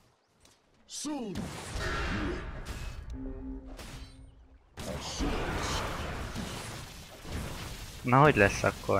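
Spells crackle and burst during a fight.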